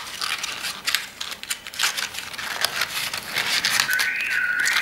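Paper crinkles and rustles under fingers.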